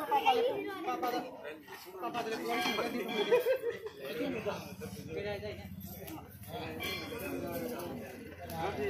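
A crowd of people chatters and sings nearby.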